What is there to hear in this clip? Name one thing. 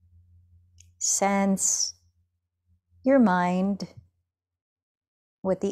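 A woman speaks softly and slowly, close to a microphone.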